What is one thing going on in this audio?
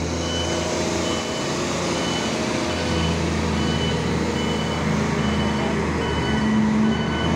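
A warning alarm beeps over and over at an even pace.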